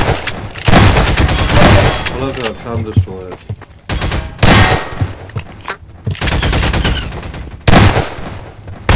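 Shotgun blasts boom loudly.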